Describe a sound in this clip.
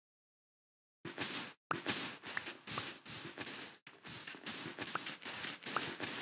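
A shovel digs into sand in quick, repeated crunching scrapes.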